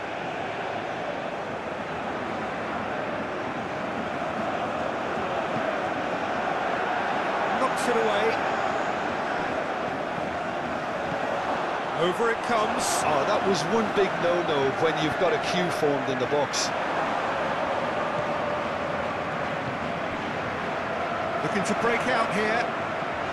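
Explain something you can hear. A large stadium crowd roars and chants steadily.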